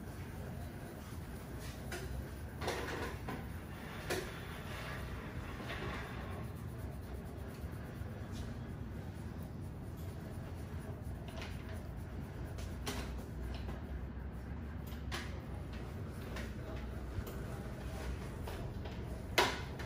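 Fingers rub and scrunch through wet hair.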